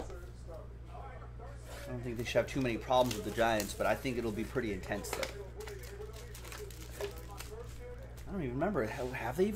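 A cardboard box rustles and scrapes as hands open it.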